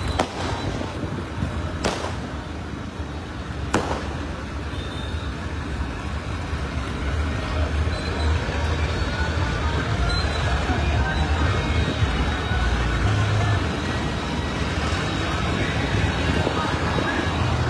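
Tractor engines chug as tractors drive past.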